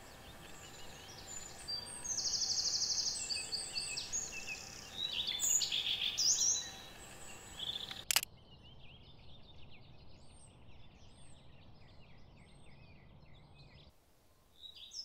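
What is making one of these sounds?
A small bird sings bright, quick phrases nearby.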